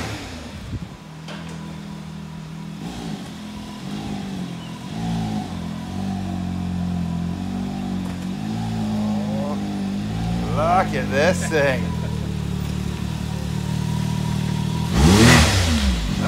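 An off-road vehicle's engine idles with a deep, steady rumble.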